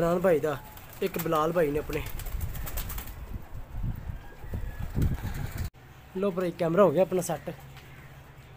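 Pigeons coo loudly nearby.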